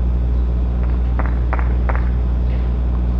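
A tennis ball bounces repeatedly on a hard clay court.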